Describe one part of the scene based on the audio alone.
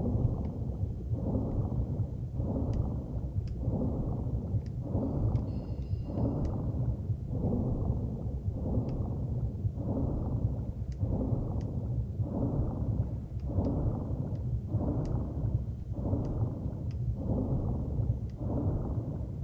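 Water swooshes in steady, even surges as a swimmer strokes underwater.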